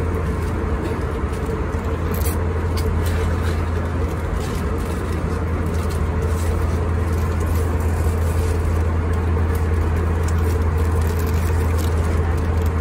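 A steady low drone of an airplane cabin hums throughout.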